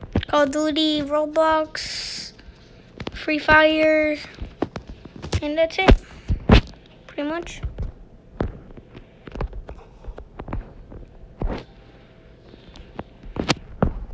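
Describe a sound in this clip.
Footsteps thud on grass and pavement.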